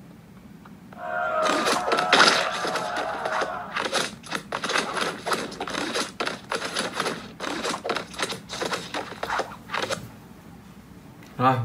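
Rapid game fighting sounds of hits and thuds play from a small device speaker.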